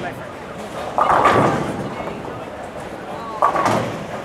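A bowling ball thuds onto a wooden lane and rolls away with a low rumble.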